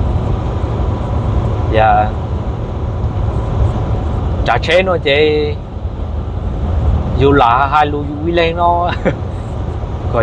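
A vehicle's engine hums steadily with road rumble while driving at speed.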